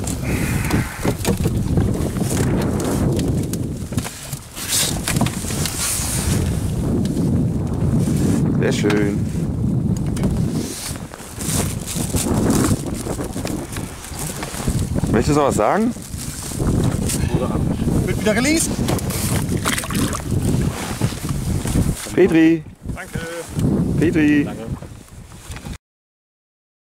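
Small waves lap against an inflatable boat.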